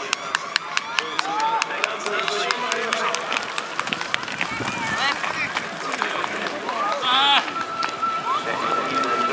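Spectators nearby call out and cheer.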